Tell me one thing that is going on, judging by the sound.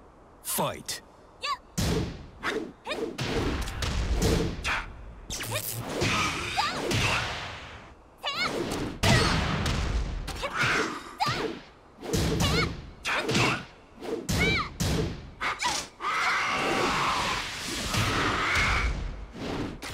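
Punches and kicks land with sharp, heavy thuds in quick bursts.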